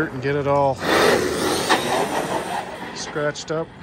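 A toy car's electric motor whirs as it speeds away across asphalt and fades.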